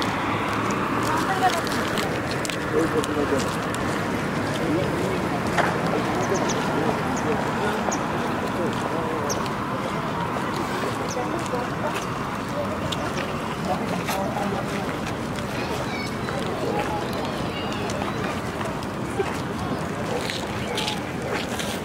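Men and women talk in a low murmur outdoors.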